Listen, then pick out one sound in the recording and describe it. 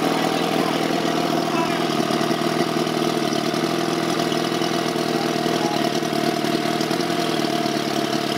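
An outboard motor runs on a small boat.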